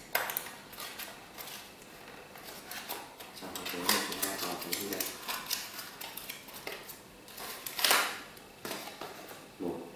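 Paper packaging rustles and crinkles as it is handled.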